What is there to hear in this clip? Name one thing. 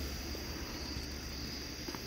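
A raccoon chews on food.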